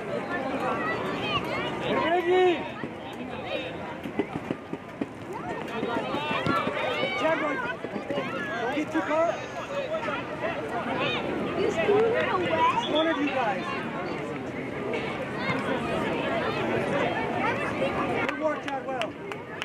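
Young players and spectators shout and call out across an open field outdoors.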